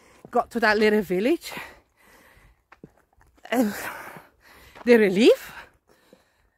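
A middle-aged woman talks expressively close to a microphone, outdoors.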